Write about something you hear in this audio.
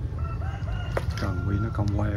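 A fish splashes at the surface of a pond.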